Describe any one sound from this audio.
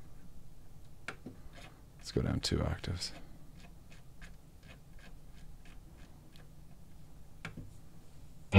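A knob clicks softly as it is turned.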